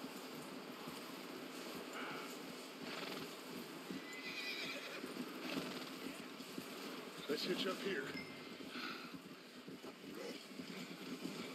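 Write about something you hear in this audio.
Horse hooves thud steadily on snow.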